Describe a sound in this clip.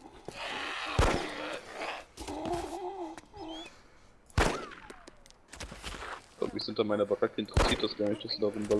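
A pistol fires several sharp shots indoors.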